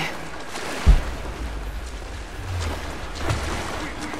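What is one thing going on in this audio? Water sloshes as someone wades through it.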